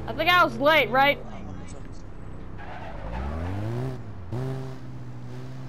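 A vehicle engine revs up and hums steadily.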